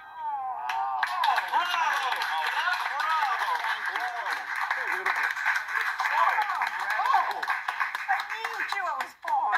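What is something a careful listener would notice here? An audience cheers and claps loudly through a small speaker.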